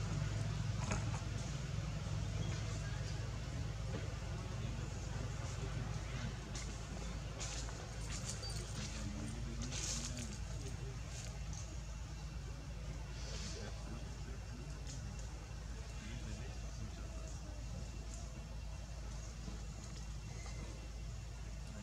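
Leaves rustle softly as monkeys shift on a branch.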